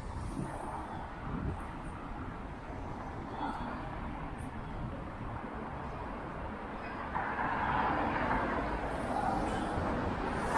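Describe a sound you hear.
A car drives slowly past.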